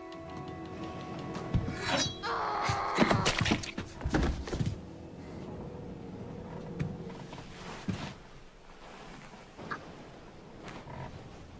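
A young woman gasps and cries out in fear, close by.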